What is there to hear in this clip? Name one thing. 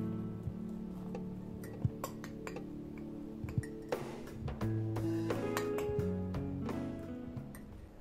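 A spoon clinks against a glass.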